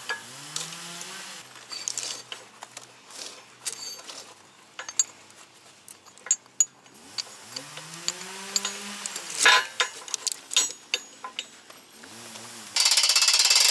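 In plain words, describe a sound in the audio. A pull-start cord is yanked several times.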